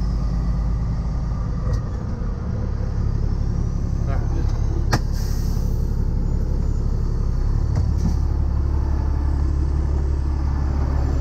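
A truck's diesel engine rumbles steadily from inside the cab.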